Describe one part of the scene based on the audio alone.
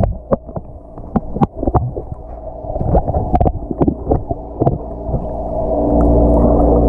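Water swirls and knocks, heard muffled from underwater.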